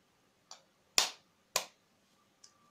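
A knife taps sharply against an eggshell.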